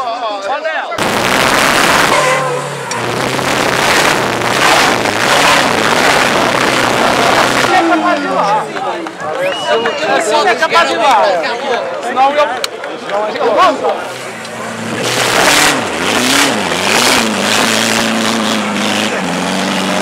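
An off-road vehicle's engine roars and revs hard as it climbs.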